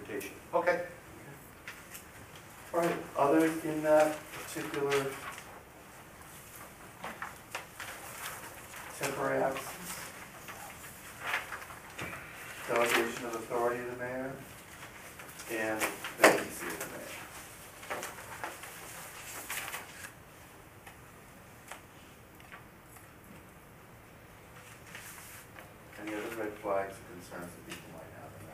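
A man speaks calmly, heard from across a room.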